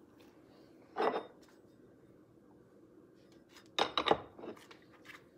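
Plastic and metal parts clatter on a hard counter.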